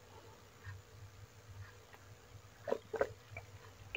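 A man sips and gulps a drink close to a microphone.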